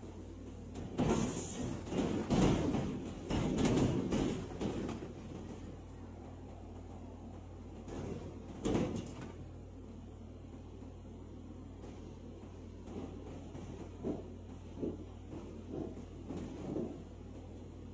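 Metal bangs and thuds as a car's roof hits rocks.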